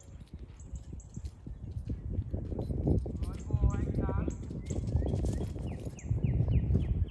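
A dog runs across grass, its paws thudding on the ground.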